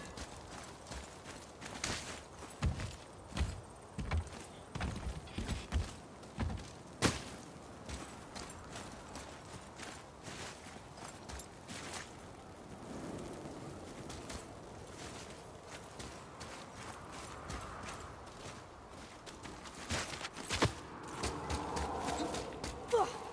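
Heavy footsteps thud on rock and gravel.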